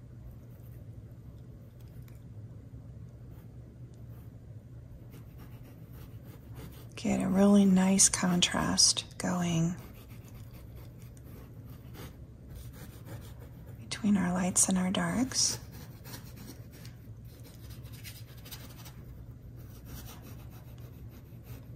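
A paintbrush dabs and brushes softly on canvas.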